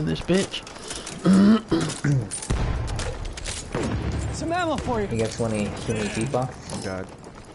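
A machine gun fires in short rapid bursts.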